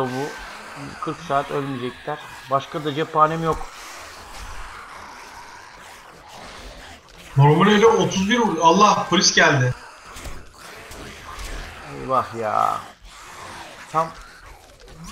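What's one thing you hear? A middle-aged man talks with animation into a close microphone.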